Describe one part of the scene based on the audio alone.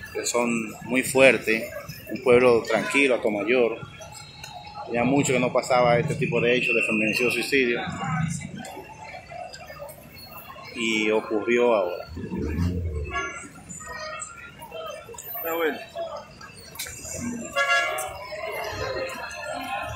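A crowd of people chatters in the street outdoors.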